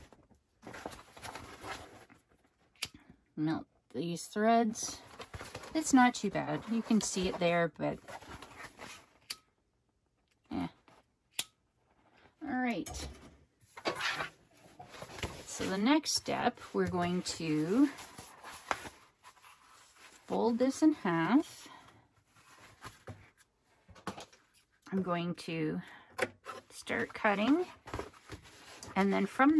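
Stiff fabric rustles as hands fold and smooth it.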